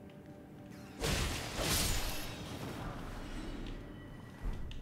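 A blade slashes and strikes with a loud burst of noise.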